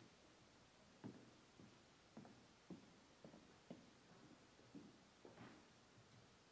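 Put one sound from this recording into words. Footsteps thud on a wooden stage in a large hall.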